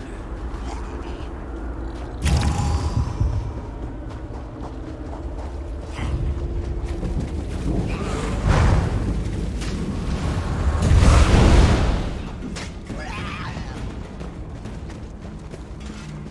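Footsteps run over grass and earth.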